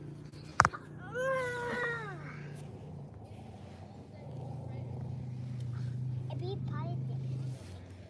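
Small hands scrape and dig in sand.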